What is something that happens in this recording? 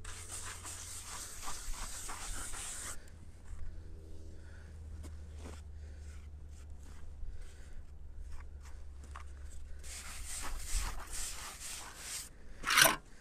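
A trowel scrapes and smooths wet cement against a block.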